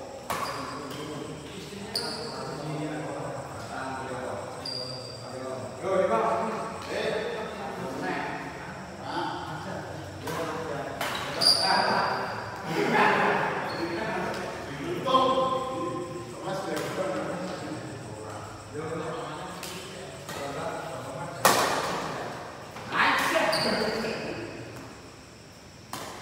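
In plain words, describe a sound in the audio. Shuttlecocks are hit sharply with rackets in an echoing hall.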